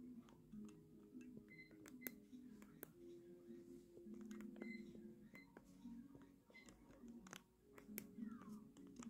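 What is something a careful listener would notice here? Video game sound effects chime and pop.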